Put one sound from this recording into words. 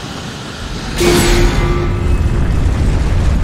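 A loud magical blast bursts with a crackling roar.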